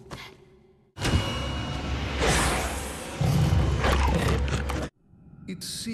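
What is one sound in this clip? A monster growls and roars deeply.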